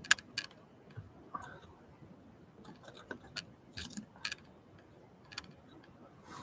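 A hand bumps and rubs against a microphone up close, with sharp clicks.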